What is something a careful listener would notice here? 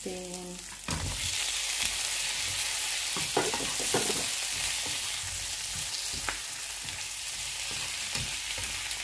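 Shrimp hiss and crackle loudly as they hit the hot pan.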